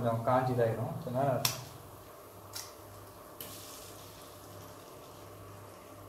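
An egg cracks against the rim of a pan.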